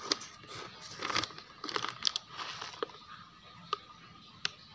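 Granules rattle and pour from a scoop.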